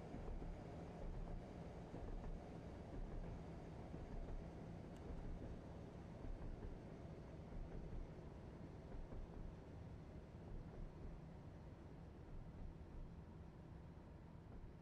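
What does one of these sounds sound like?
A train engine rumbles steadily as the train rolls along the track.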